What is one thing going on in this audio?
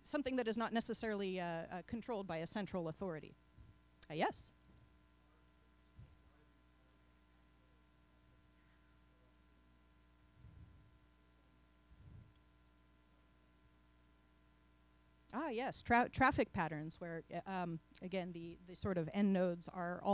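A woman speaks calmly into a microphone in a room with a slight echo.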